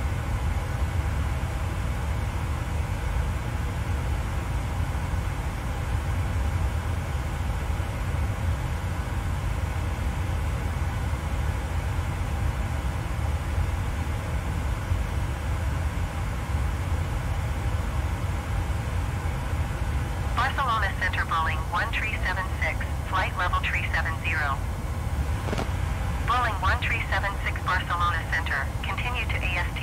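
Jet engines drone steadily with a low rumble.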